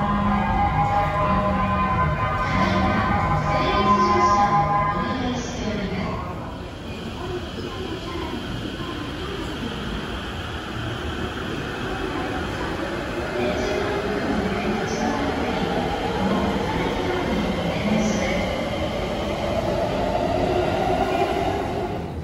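Footsteps of passengers echo across a station platform.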